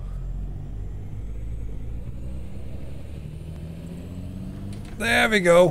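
A truck engine hums steadily at a low pitch.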